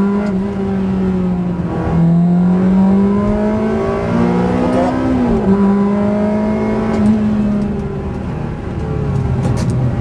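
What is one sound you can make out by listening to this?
A car engine hums steadily, its pitch shifting as the car speeds up and changes gear.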